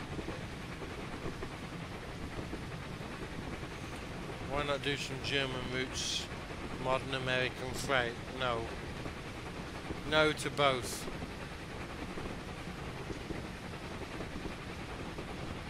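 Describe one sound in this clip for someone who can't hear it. A steam locomotive rumbles steadily along the track.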